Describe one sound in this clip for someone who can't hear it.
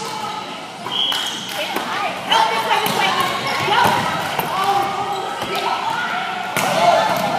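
A volleyball is hit with sharp slaps in a large echoing gym.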